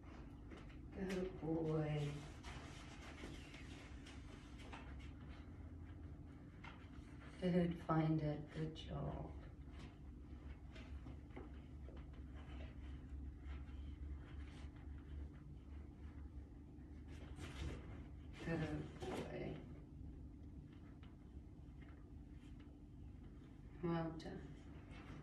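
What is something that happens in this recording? A young woman gives short spoken commands nearby.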